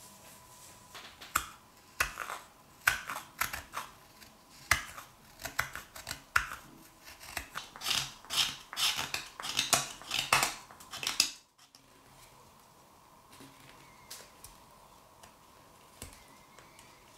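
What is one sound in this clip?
A knife scrapes and shaves wood in short strokes.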